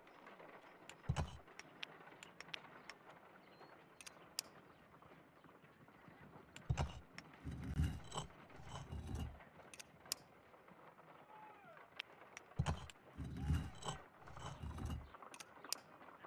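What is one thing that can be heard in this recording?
Heavy wooden blocks thud and knock as they shift into place.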